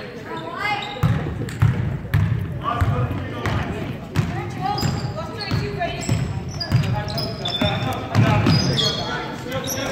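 A basketball bounces steadily on a wooden floor.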